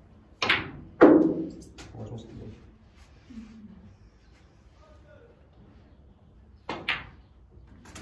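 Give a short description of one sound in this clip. Snooker balls click sharply against each other.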